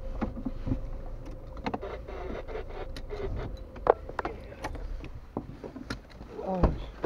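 A car engine idles, heard from inside the cabin.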